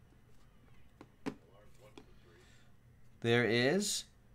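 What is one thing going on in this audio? Cardboard packaging rustles and slides as hands open a box.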